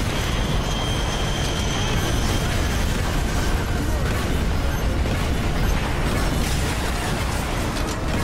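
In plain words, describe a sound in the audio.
Heavy debris crashes and crumbles.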